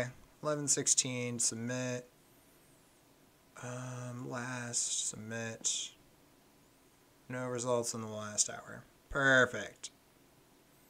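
A young man talks calmly and closely into a microphone, in short bursts with pauses.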